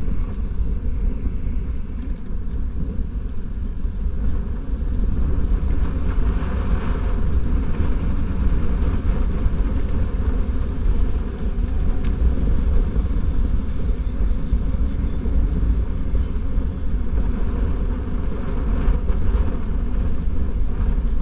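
Wind buffets loudly outdoors, rumbling steadily.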